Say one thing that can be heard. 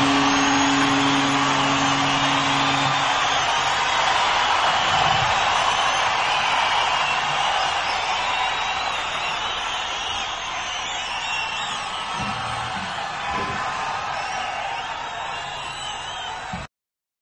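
A huge stadium crowd cheers and roars loudly.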